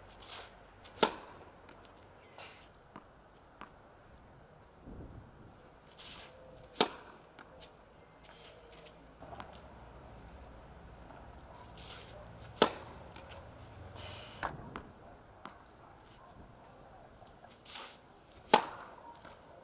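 A tennis racket strikes a ball with sharp pops, outdoors.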